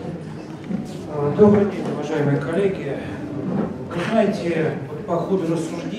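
A middle-aged man speaks into a handheld microphone, heard through loudspeakers in a room.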